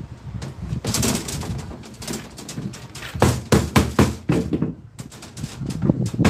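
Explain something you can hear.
Metal clatters and knocks on a metal cabinet.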